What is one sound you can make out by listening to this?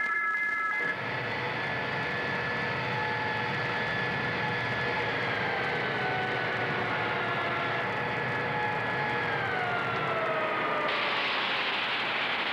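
A machine whines steadily, slowly dropping in pitch.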